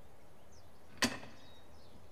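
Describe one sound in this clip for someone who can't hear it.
A metal latch clicks sharply into place.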